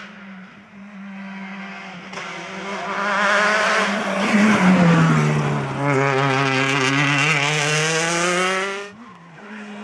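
A rally car engine roars past at high speed.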